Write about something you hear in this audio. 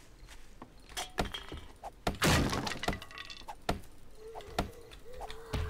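Blows knock sharply against a wooden door.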